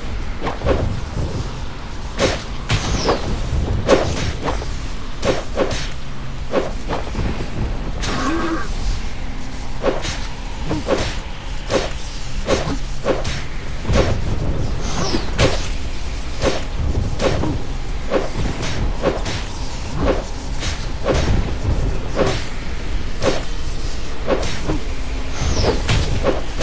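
Sword slashes and hits strike repeatedly in quick bursts.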